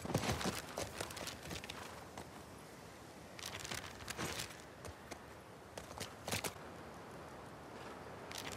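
Paper crinkles and rustles as a map is unfolded.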